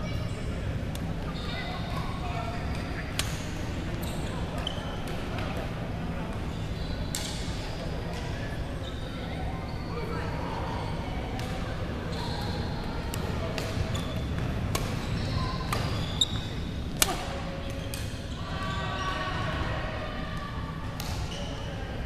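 Rackets strike a shuttlecock in sharp pops that echo in a large hall.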